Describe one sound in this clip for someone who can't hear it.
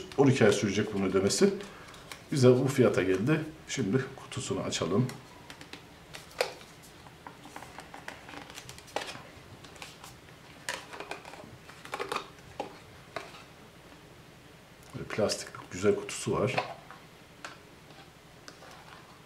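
A small cardboard box rustles and taps as it is handled.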